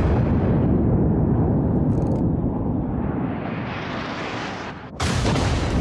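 Heavy guns boom with a deep, rolling rumble.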